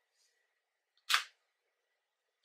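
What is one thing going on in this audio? A small makeup compact clicks open.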